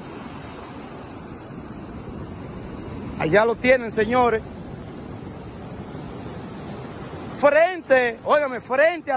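Waves break and wash up the shore steadily.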